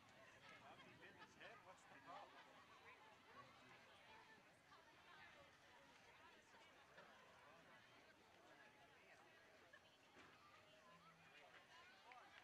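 A crowd of spectators chats and calls out close by, outdoors.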